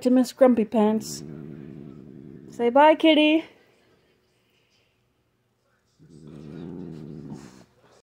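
A cat purrs loudly close by.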